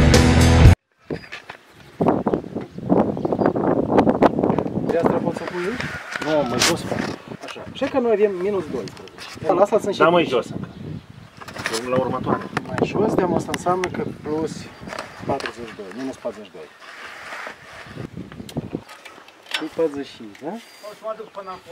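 A man talks calmly and explains at close range, outdoors.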